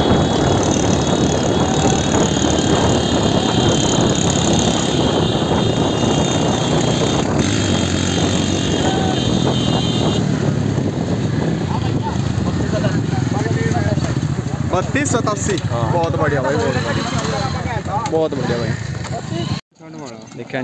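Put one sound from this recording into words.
Motorcycle engines rumble along closely.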